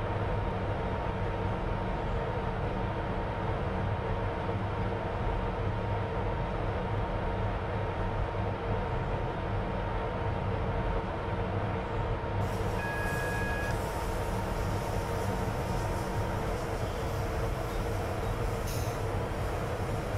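A train engine rumbles steadily along the rails.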